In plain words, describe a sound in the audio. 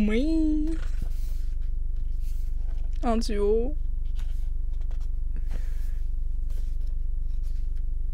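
Paper pages rustle as they turn.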